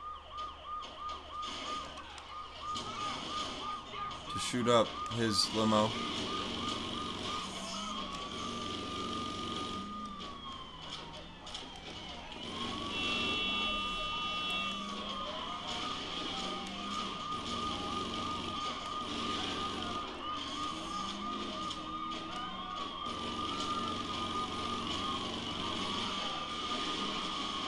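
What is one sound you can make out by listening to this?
A police car's siren wails steadily throughout.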